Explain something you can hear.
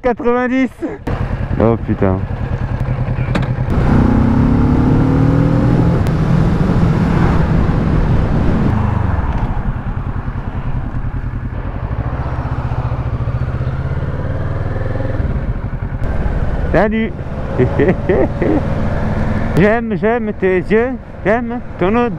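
A motorcycle engine hums steadily and rises in pitch as it speeds up.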